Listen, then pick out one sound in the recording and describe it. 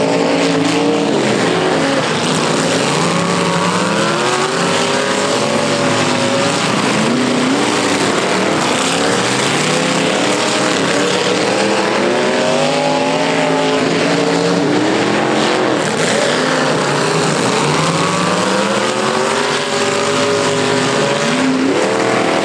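Car engines roar and rev loudly, rising and falling.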